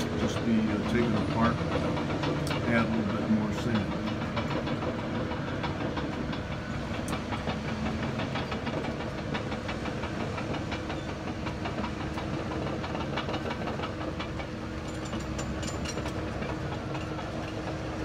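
Heavy machinery engines rumble steadily in the distance.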